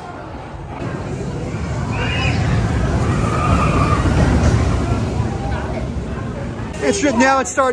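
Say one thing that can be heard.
A roller coaster train roars past on its track.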